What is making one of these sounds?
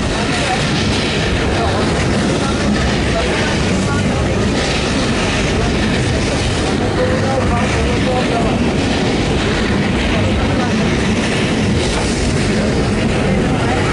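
A narrow-gauge railway carriage rumbles and clatters along the track.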